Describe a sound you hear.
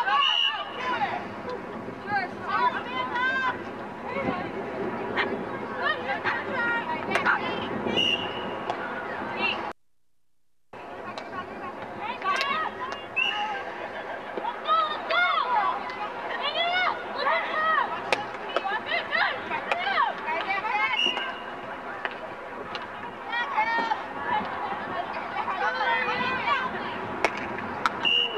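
Hockey sticks clack sharply against a ball.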